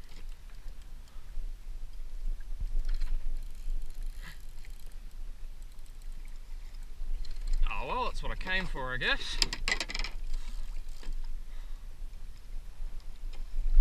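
Water laps and splashes against a small boat's hull.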